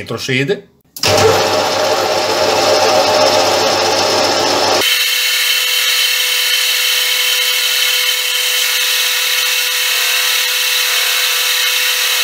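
A metal lathe spins with a steady, high-pitched whine.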